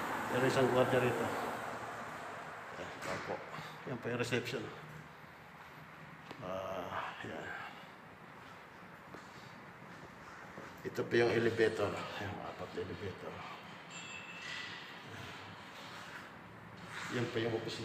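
A man talks calmly and close by, pausing now and then.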